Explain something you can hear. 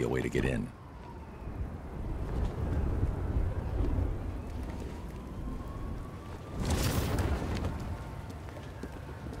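Wind rushes loudly past during a fast glide through the air.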